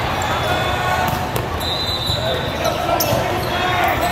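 A volleyball is struck hard with a hand.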